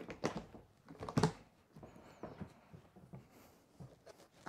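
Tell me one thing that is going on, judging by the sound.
A hard case lid creaks open.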